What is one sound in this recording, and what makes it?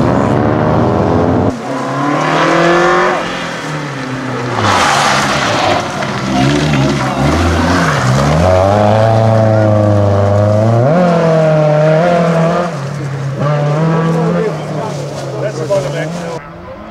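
A rally car engine revs hard and changes gear as the car speeds past.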